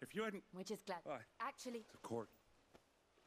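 A young woman speaks warmly and clearly.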